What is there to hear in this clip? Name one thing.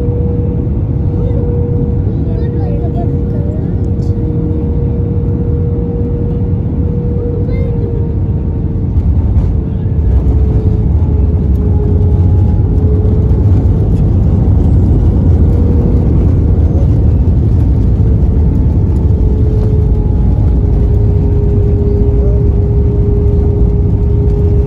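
Jet engines roar steadily from inside an airliner cabin, growing louder.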